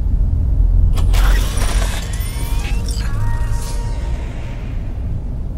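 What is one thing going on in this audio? A vending machine whirs and clunks as it drops a can.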